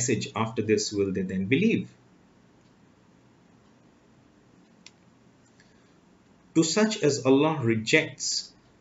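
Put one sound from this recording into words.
A man speaks calmly and close to a microphone, pausing between phrases.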